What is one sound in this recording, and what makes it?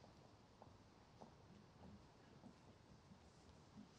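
Footsteps walk slowly on paving.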